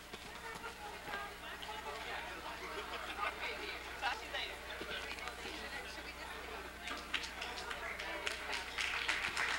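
An audience murmurs and chatters in a large room.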